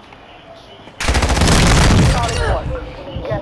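A rifle fires a short, loud burst of shots.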